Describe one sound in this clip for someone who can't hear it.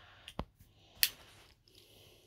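Pool balls clack together.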